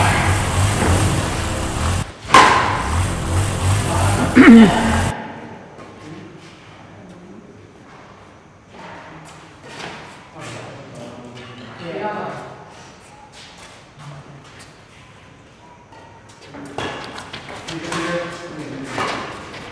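Sneakers squeak and shuffle on a hard floor.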